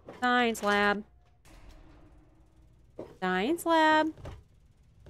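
A young woman exclaims in a high, drawn-out voice close to a microphone.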